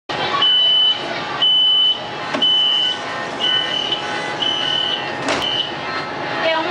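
Door warning beeps sound in a steady repeating pattern.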